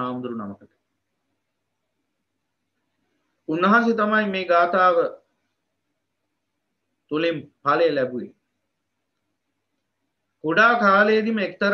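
A man speaks calmly in bursts, heard through an online call.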